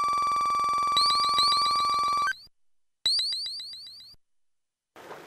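Bright electronic chimes ring in quick succession, then fade.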